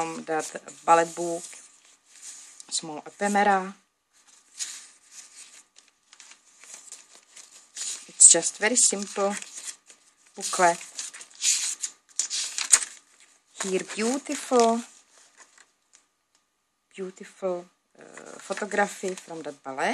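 Stiff paper pages rustle and flap as they are turned.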